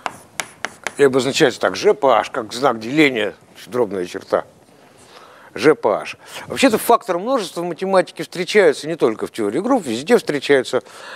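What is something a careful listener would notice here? An elderly man lectures with animation.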